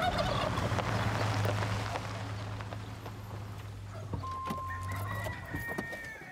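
A car engine idles and then stops.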